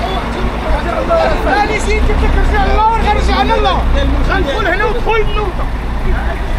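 Several men talk loudly nearby at the same time.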